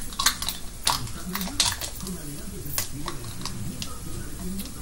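Hands click and rattle a small container.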